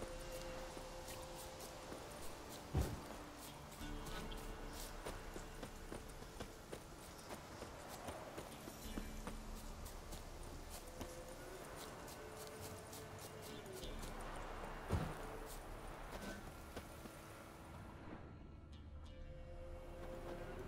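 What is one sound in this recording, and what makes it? Footsteps run through dry grass.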